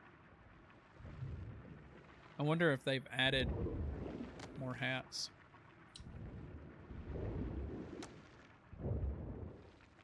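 A man talks casually close to a microphone.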